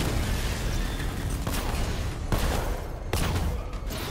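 Cannon fire bursts in rapid shots.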